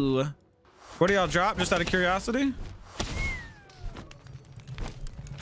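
Blows thump and clatter in a fight.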